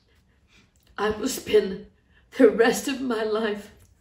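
A woman speaks close by in a shaky, tearful voice.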